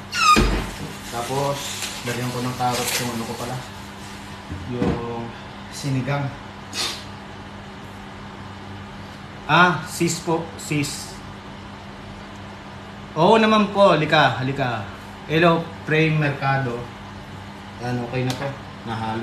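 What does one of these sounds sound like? A young man talks casually, close by.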